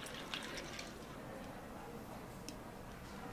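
Coffee pours into a cup of milk.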